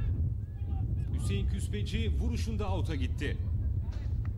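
Footballers shout across an open field.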